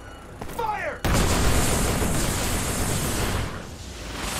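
Rockets launch and roar overhead in a rushing whoosh.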